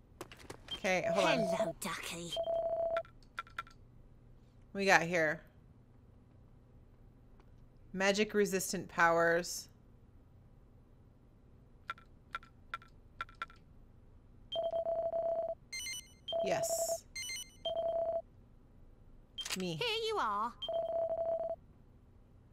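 Short electronic beeps sound in quick bursts.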